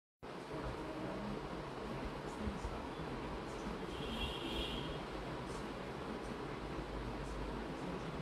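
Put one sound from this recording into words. A young woman speaks calmly and close up.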